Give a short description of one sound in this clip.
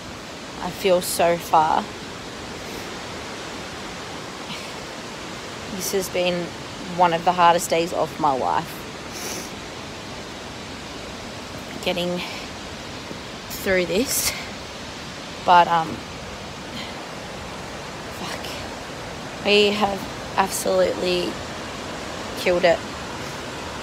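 A young woman talks closely and brightly in short phrases with pauses.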